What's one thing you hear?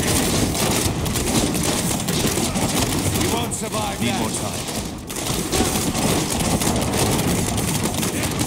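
Magic blasts crackle and explode in rapid, dense bursts.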